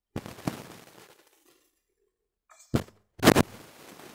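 A key is picked up with a short metallic clink.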